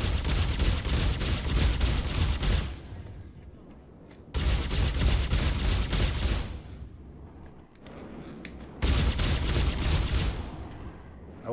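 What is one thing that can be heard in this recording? Laser cannons fire in rapid, loud bursts.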